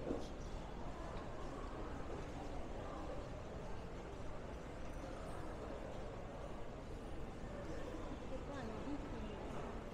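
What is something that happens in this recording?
Distant voices murmur in a large echoing arcade.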